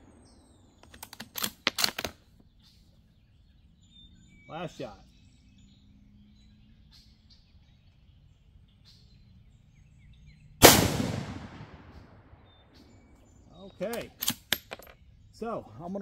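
A rifle bolt clicks and clacks as it is cycled.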